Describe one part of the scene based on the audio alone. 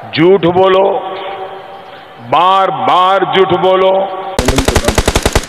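An older man speaks with emphasis into a microphone through loudspeakers.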